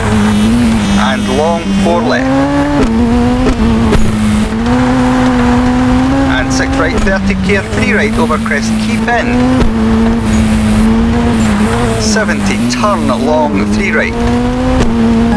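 Tyres squeal briefly in skidding turns.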